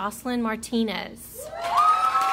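A woman announces through a microphone in a large hall.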